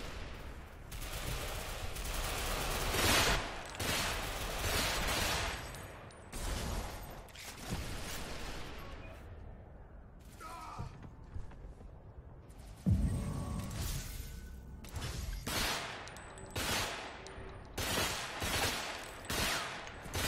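Rifle shots fire in short, loud bursts.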